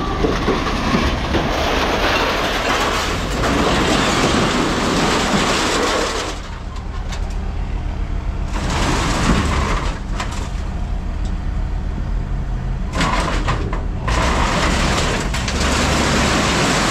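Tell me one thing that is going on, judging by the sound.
Scrap metal and debris scrape and clatter against a machine's bucket.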